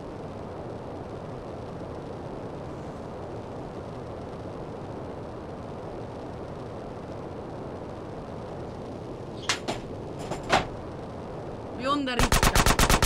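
A jetpack roars steadily.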